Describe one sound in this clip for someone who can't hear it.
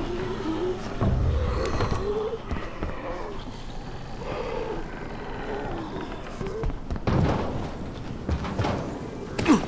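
Footsteps thud and land heavily on a hard roof.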